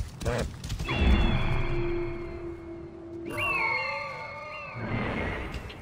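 An eagle screeches sharply.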